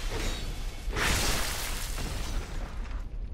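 Fire bursts with a loud roar.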